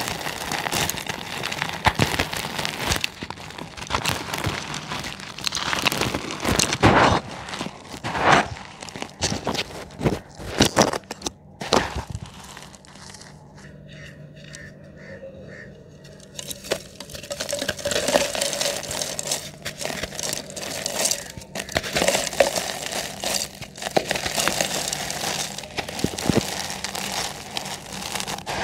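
Dry cement crumbs patter into a cement pot.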